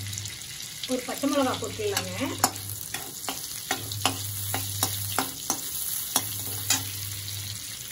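Green chillies crackle and spit loudly as they hit hot fat.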